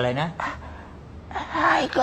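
A woman asks a question in surprise.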